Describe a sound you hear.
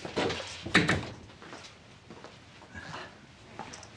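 A younger man greets warmly.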